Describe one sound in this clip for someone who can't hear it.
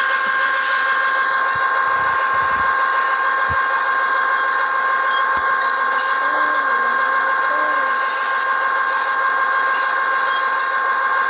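A diesel train engine hums steadily as the train rolls along.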